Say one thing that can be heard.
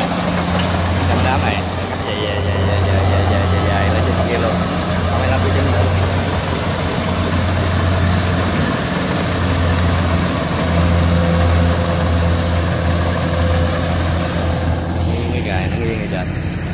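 A combine harvester engine rumbles steadily close by.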